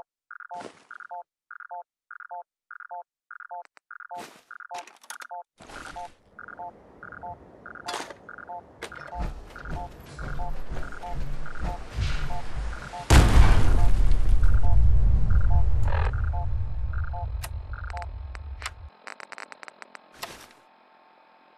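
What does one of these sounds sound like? Short electronic clicks sound as menu items are selected.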